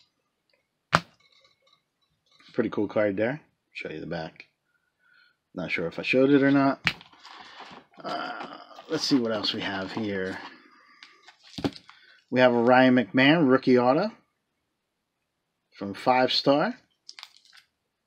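Hard plastic card cases click and clack as they are handled.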